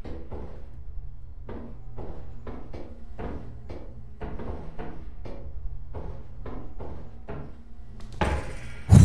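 Footsteps clank steadily on metal stairs.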